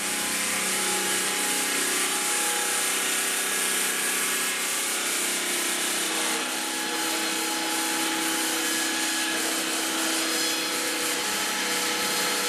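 A saw motor hums and whines steadily.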